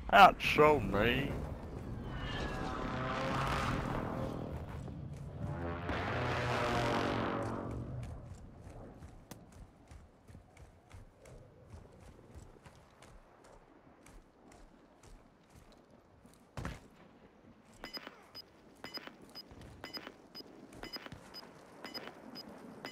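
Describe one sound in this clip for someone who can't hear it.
Footsteps scuff softly on stone.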